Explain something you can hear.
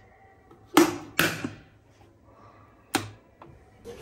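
A kettle's switch clicks.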